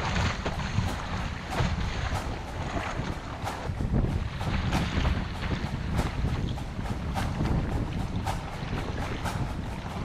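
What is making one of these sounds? A paddle splashes into the water in regular strokes.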